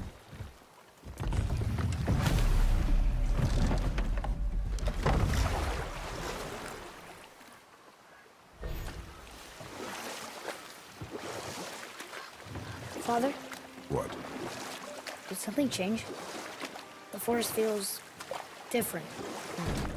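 River water rushes and splashes around a boat.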